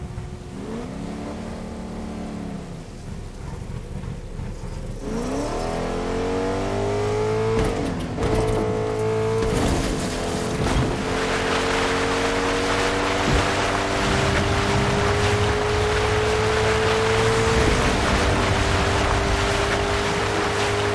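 A car engine drones, its pitch rising and falling as it drives.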